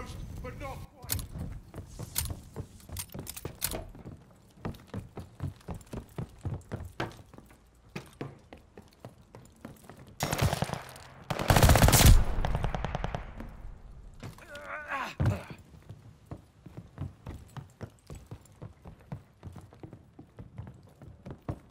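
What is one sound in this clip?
Footsteps clank on metal stairs and a wooden deck.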